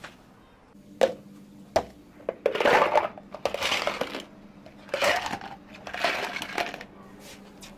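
Ice cubes clatter into plastic cups.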